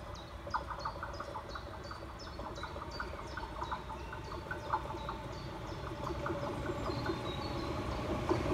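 A level crossing bell rings in fast, steady strokes.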